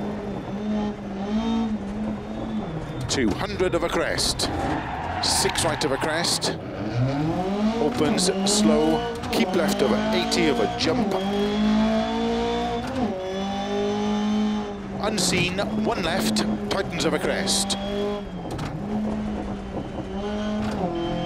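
A car engine revs hard, rising and falling as gears change.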